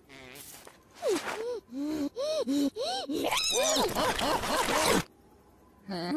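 A cartoon dog babbles and yelps excitedly in a high, wobbling voice.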